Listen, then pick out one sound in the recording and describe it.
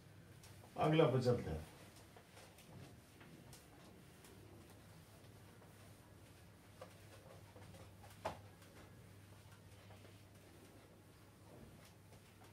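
A cloth rubs across a whiteboard.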